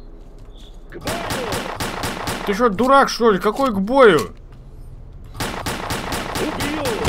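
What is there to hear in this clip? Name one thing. A gun fires in rapid bursts of loud shots.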